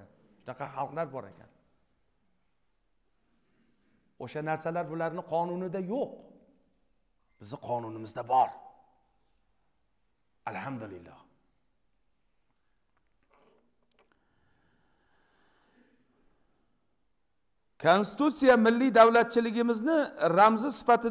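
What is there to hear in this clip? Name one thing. A middle-aged man preaches with passion into a microphone in an echoing hall, pausing between phrases.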